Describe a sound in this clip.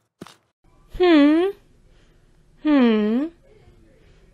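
A young child hums a puzzled, questioning sound.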